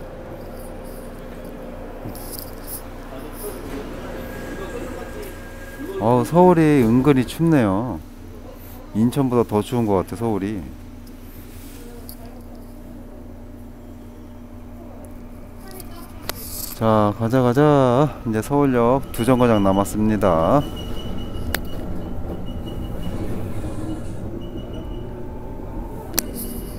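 A subway train rumbles steadily along the track.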